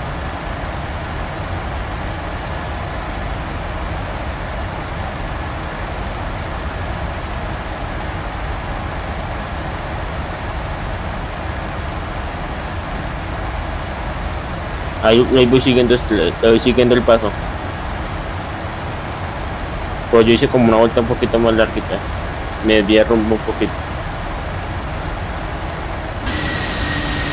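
A jet engine drones steadily in the cockpit.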